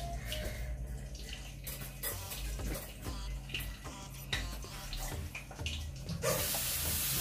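A spoon scrapes and taps against a pot.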